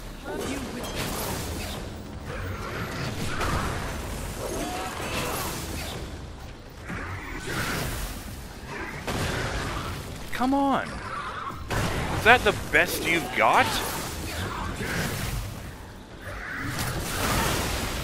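Heavy blows and crashes of combat ring out in a game fight.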